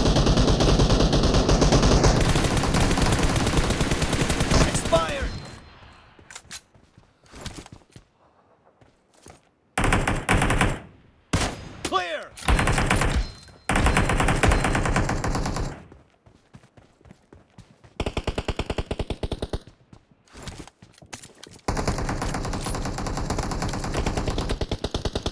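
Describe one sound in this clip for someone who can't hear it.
An automatic rifle fires in a video game.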